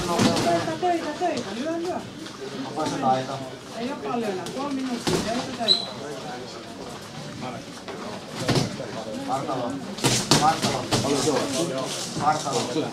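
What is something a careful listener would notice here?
A man talks nearby in a calm voice.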